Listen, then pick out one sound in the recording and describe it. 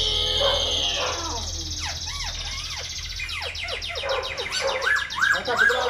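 A caged songbird sings loud, varied whistling phrases close by.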